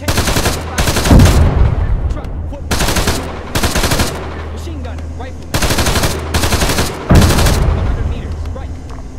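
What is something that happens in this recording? Shells explode with deep booms that rumble away.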